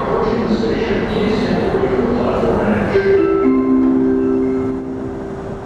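A subway train horn blares twice as the train approaches.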